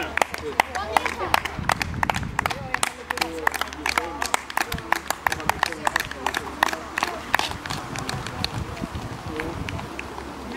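A crowd of spectators claps rapidly nearby.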